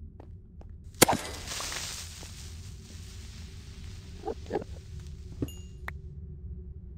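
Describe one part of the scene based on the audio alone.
An explosion bursts and rumbles away.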